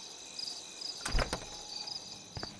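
A door handle clicks and a door opens.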